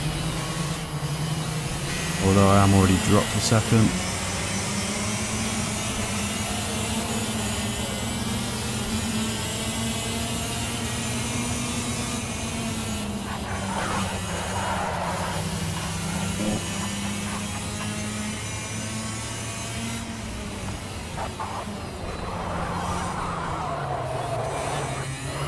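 A kart engine drones steadily, its pitch rising as it speeds up and dropping on the bends.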